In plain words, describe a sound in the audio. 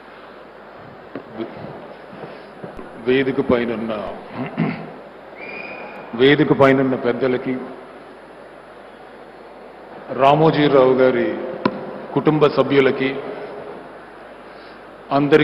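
A man speaks with emphasis into a microphone, heard through loudspeakers in a large hall.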